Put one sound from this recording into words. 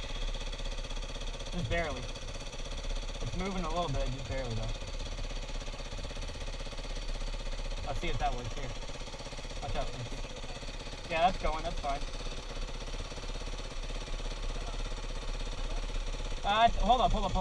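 A dirt bike engine idles steadily.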